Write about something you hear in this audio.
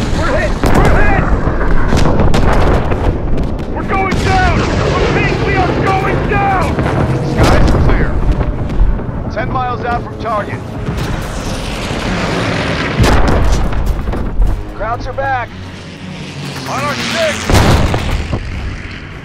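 Machine guns rattle in rapid bursts.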